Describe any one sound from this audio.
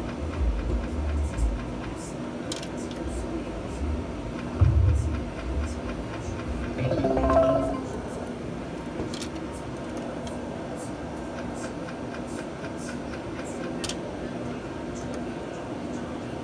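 Slot machine reels spin with electronic chimes.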